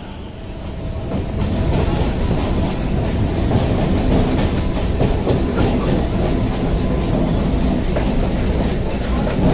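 A train rumbles and rattles along the tracks.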